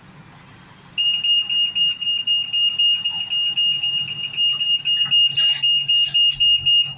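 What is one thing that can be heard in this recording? A bus door warning beeper sounds in quick pulses as the doors close.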